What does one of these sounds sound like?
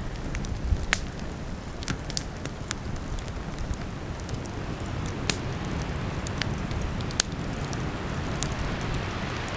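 Flames roar softly in a low, steady rush.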